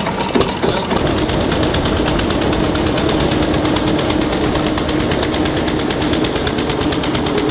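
A vintage tractor drives past with its engine thumping steadily.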